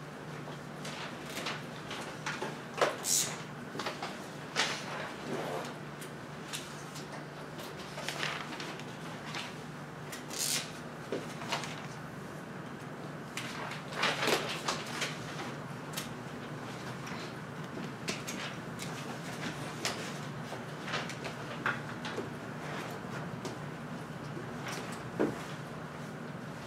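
A man speaks calmly, lecturing.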